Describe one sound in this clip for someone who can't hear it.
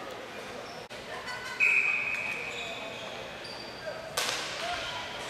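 Hockey sticks clack against a ball and each other.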